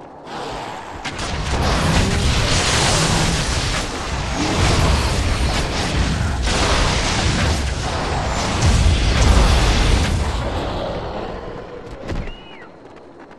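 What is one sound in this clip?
Weapons clash and magic blasts crackle loudly in a fight.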